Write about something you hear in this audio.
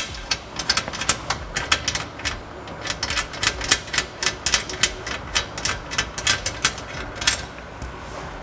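Plastic clips click and snap rapidly.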